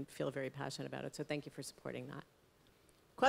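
A woman speaks into a microphone with animation.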